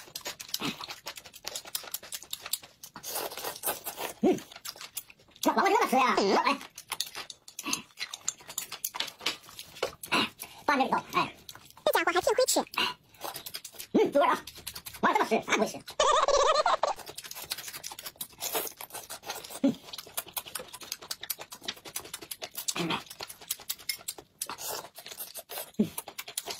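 A man and a woman chew and crunch food with smacking sounds.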